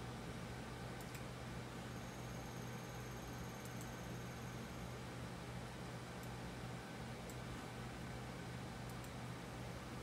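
A computer mouse clicks softly now and then.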